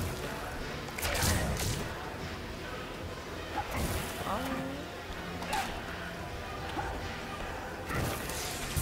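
Punches and kicks land with heavy thuds and slashing swooshes.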